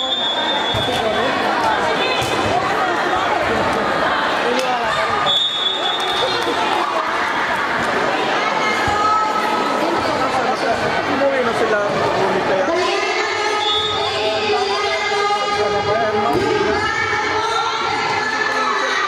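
A volleyball thumps off players' hands.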